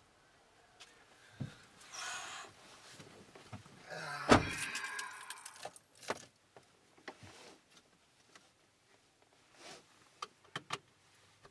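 A man climbs into a car seat with rustling clothes and soft thumps.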